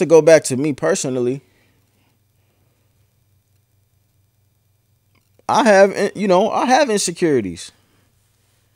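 A man speaks with animation, close into a microphone.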